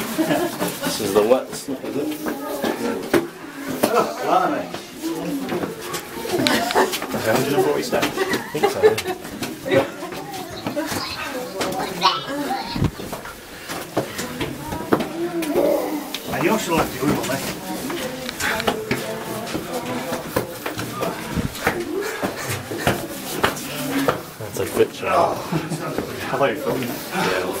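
Footsteps scuff on stone steps.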